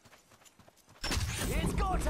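A gun fires a burst of loud shots.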